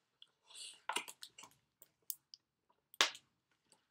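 A man gulps a drink from a bottle.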